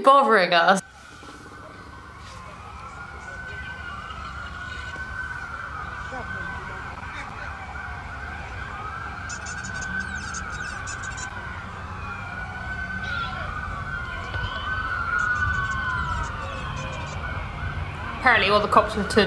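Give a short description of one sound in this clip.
Police sirens wail and warble at once, rising and falling.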